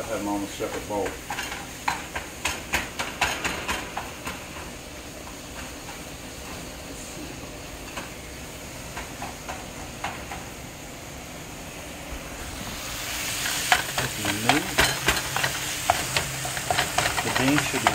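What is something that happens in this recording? A spatula scrapes and stirs in a frying pan.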